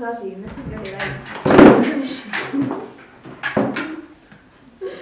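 A group of teenagers laughs together, close by.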